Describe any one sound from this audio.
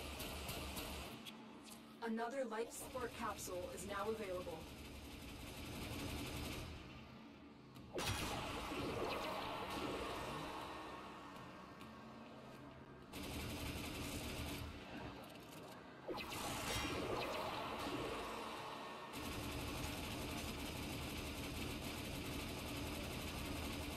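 Energy weapons blast and crackle.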